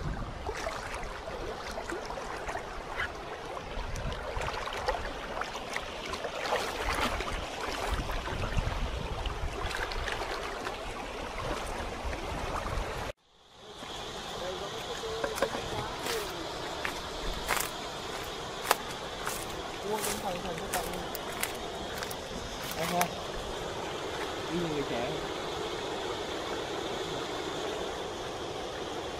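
A shallow stream babbles and splashes over rocks.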